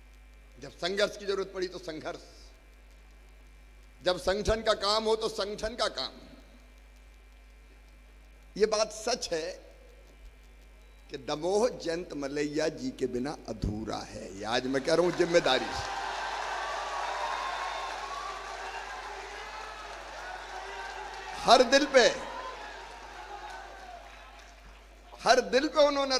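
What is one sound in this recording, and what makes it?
A middle-aged man speaks forcefully into a microphone, with pauses.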